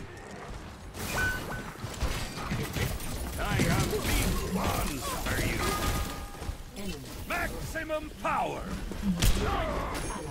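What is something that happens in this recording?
Game weapons fire in rapid bursts with sharp impacts.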